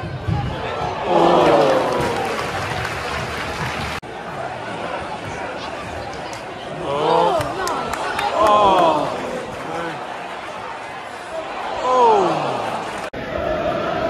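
Fans sing and chant together loudly.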